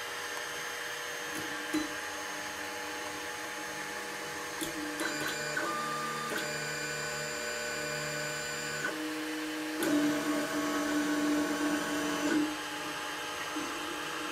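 A cooling fan whirs steadily.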